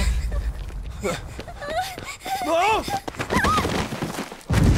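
A young woman cries out in a high, strained voice.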